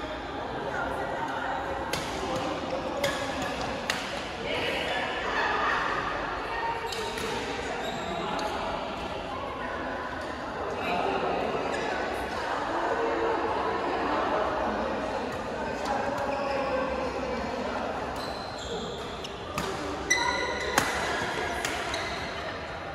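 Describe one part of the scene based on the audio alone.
Players call out and chatter in the echoing hall.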